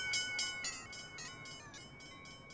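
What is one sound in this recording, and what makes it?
A train rushes past.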